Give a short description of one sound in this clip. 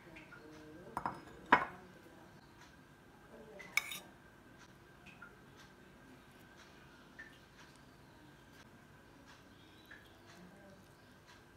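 Metal tongs tap against a ceramic plate.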